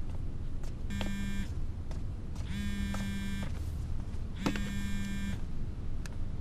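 A mobile phone rings and buzzes in short bursts.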